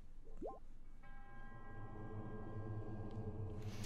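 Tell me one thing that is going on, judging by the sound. A calm, sustained musical chord swells in.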